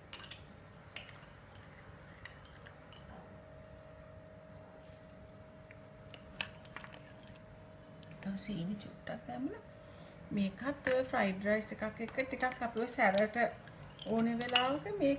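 A metal spoon clinks lightly against a small ceramic bowl.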